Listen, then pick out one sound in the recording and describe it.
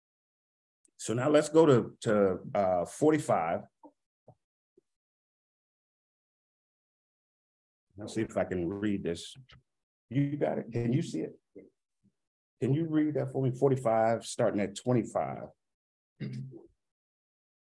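A man speaks with animation, close to a microphone, pausing between phrases.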